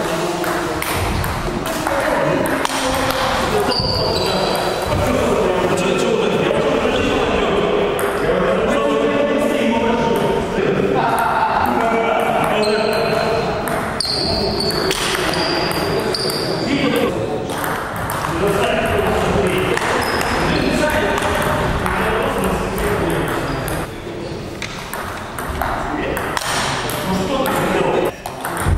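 Table tennis balls click sharply against paddles and tables.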